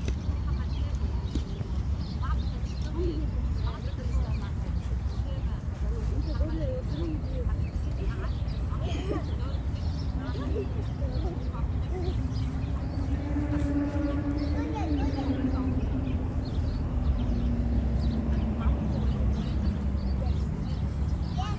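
Young children call out and chatter at a distance.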